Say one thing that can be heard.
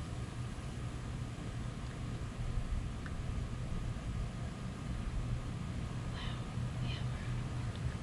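Liquid squirts softly from a squeeze bottle.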